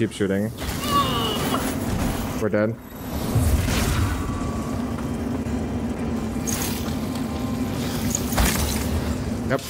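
A fiery blast bursts with a loud roar.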